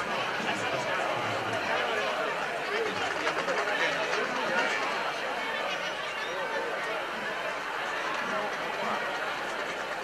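A large crowd of men, women and children chatters loudly in a big echoing hall.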